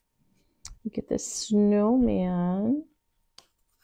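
A middle-aged woman speaks close to a microphone in a drawn-out, sing-song voice.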